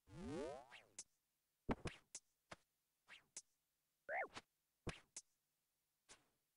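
Short electronic game sound effects zap and thud again and again.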